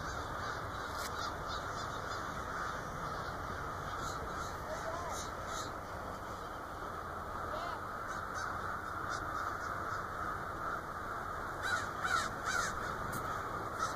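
A large flock of birds chirps and calls overhead, outdoors.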